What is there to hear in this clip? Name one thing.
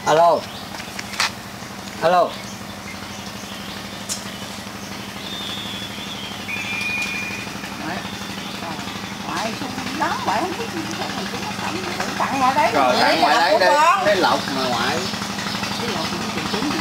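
Several adults chat casually nearby outdoors.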